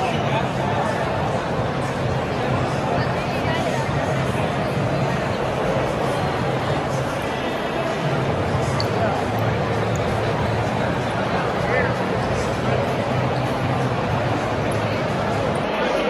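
Footsteps shuffle on a hard floor among many people.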